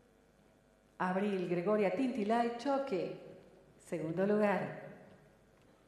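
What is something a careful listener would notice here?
A woman speaks over a loudspeaker in an echoing hall.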